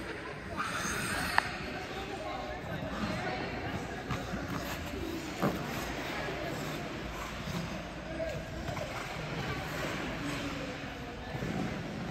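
Figure skate blades glide and scrape on ice in a large echoing rink.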